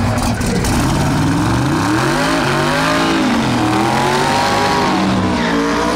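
A race car engine revs up and down repeatedly.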